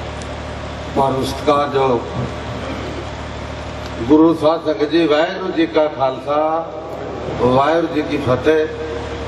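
A middle-aged man speaks into a microphone through loudspeakers, outdoors.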